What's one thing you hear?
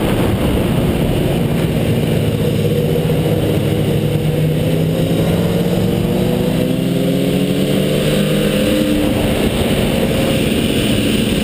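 Other motorcycle engines drone close by, rising and falling in pitch.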